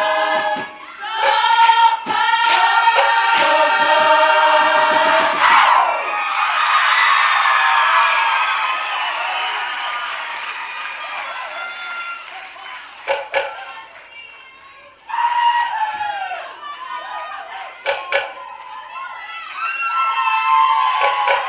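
A large group of men and women sings together loudly outdoors.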